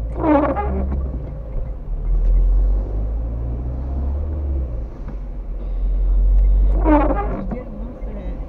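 A windscreen wiper squeaks as it sweeps across wet glass.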